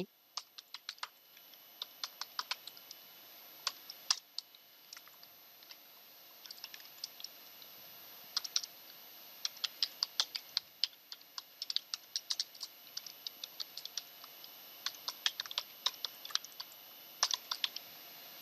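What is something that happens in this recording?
Keys clatter in quick bursts of typing on a keyboard.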